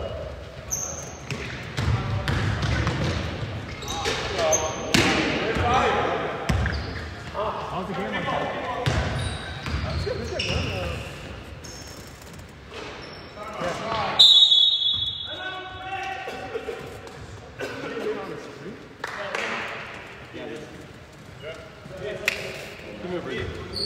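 Sneakers squeak on a hard floor in a large echoing gym.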